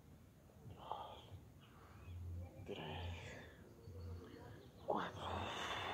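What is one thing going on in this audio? A man breathes out hard with each effort, close by.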